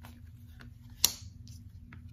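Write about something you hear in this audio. A playing card slaps down onto a pile of cards.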